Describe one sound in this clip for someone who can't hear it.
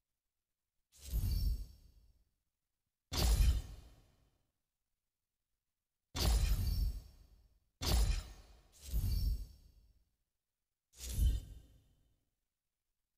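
Menu selection sounds chime several times with short swooshes.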